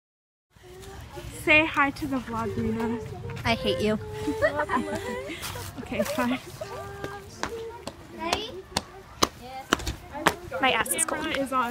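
A young woman talks with animation close by, outdoors.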